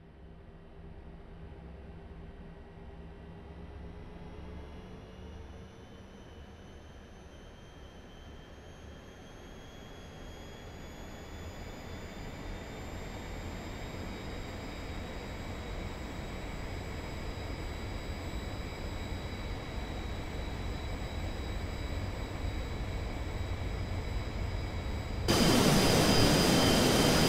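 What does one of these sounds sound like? Jet engines whine and roar, rising steadily in pitch and loudness.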